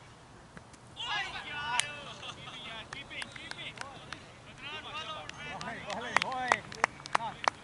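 Men shout and call out with excitement outdoors at a distance.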